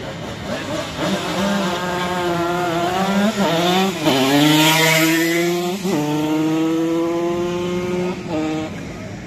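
A motorcycle engine roars past at high revs, then fades away.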